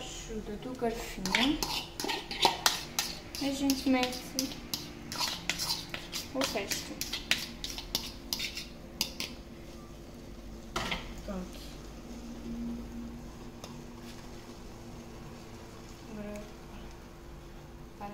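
A fork taps and scrapes against a pan.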